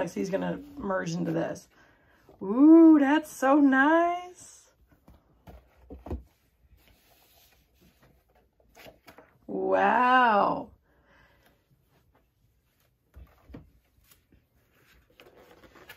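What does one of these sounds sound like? Books rustle and tap as they are handled.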